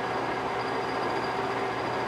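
A hand-held file scrapes against a spinning metal plate.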